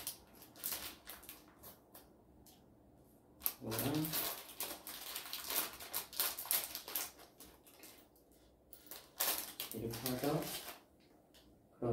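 Plastic wrappers crinkle and rustle.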